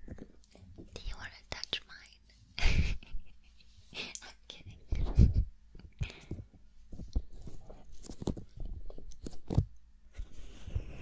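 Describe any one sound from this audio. Fingers brush and scratch close against a microphone.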